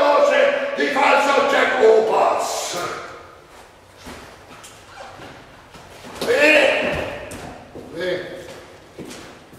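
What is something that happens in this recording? A man speaks loudly and dramatically in a large echoing hall.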